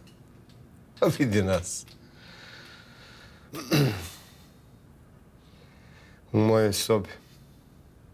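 A middle-aged man speaks calmly and warmly, close by.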